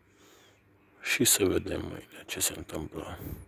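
A lighter clicks and sparks close by.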